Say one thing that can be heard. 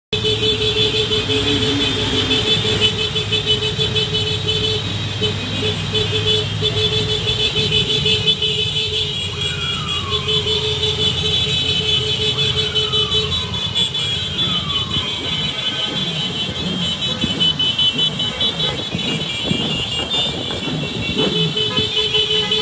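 Many scooter engines hum and buzz steadily close by.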